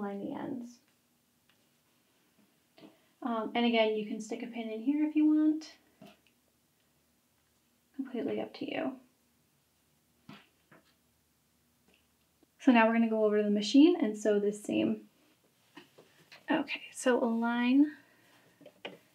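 A middle-aged woman speaks calmly and closely, in short phrases with pauses.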